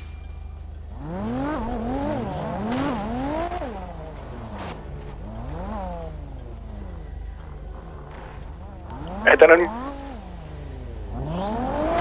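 A car engine revs and roars as it drives over a dirt track.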